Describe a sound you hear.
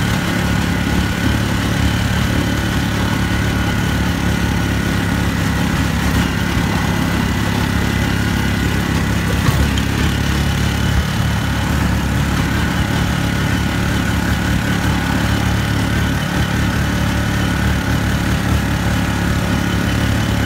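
A vehicle's engine hums steadily while driving along a road.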